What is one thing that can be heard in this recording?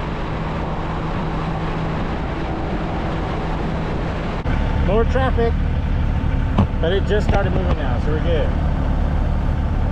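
Wind roars steadily over a fast-moving motorcycle.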